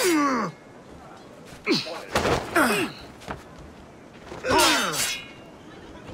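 Swords clash and ring sharply.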